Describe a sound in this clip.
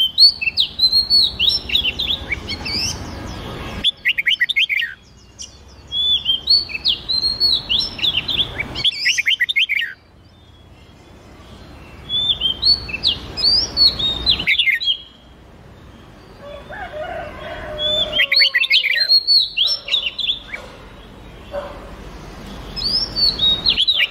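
Songbirds sing loud, quick whistling phrases in bursts.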